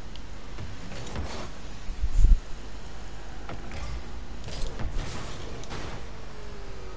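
A car's boost roars in whooshing bursts.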